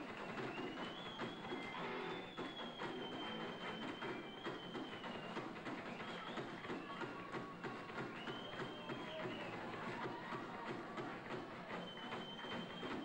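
Cymbals crash and shimmer.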